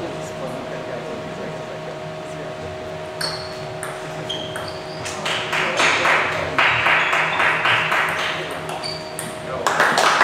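A table tennis ball clicks back and forth between paddles and table in a large echoing hall.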